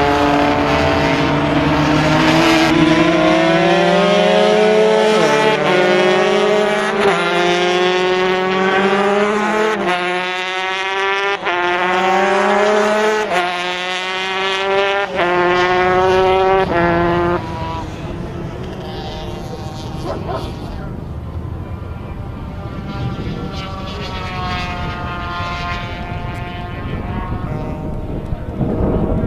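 A motorcycle engine revs hard and climbs through the gears as it speeds past.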